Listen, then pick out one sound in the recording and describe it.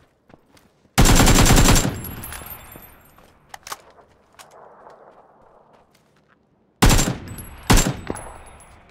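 A rifle fires rapid bursts of loud, echoing shots.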